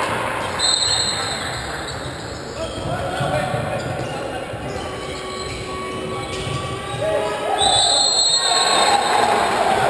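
A referee's whistle blows sharply a few times.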